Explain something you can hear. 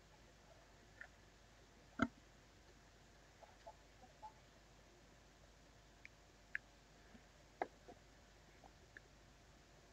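Small plastic pieces click and tap on a hard surface.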